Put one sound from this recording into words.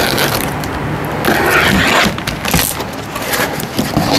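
A cardboard flap rustles as it opens.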